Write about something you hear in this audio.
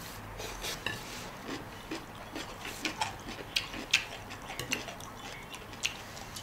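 Chopsticks clink against bowls.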